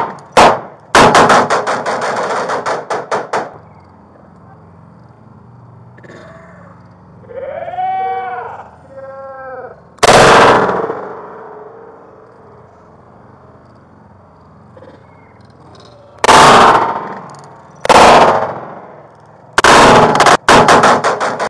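Gunshots boom loudly several times, each with a long, slowed, echoing tail.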